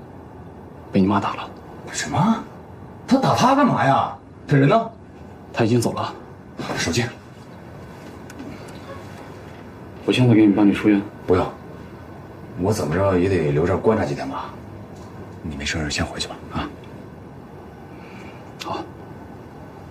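A man in his thirties speaks calmly nearby.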